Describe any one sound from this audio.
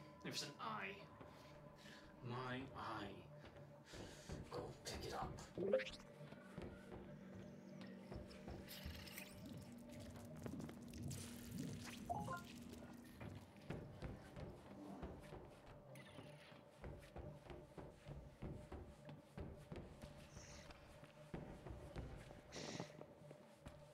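Footsteps clang on metal grating.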